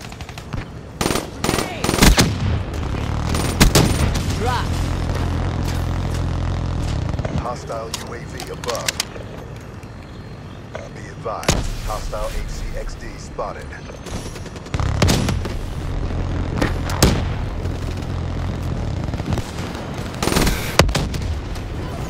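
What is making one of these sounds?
A gun fires in short, rapid bursts.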